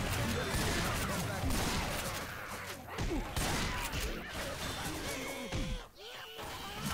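Gunfire crackles rapidly in a video game.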